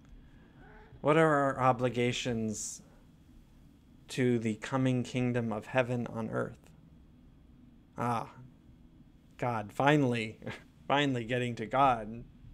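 A man speaks calmly to a microphone, close up.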